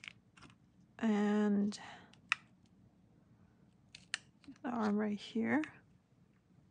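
A soft silicone mold squeaks as fingers press and bend it.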